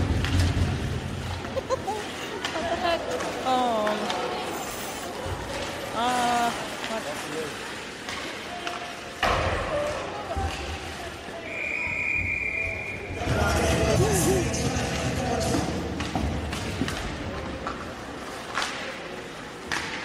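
Skates scrape and glide on ice in a large echoing arena.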